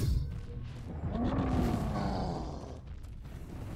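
A monster growls deeply.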